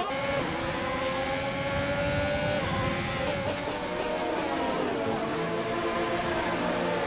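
A racing car engine whines loudly and drops in pitch as it slows.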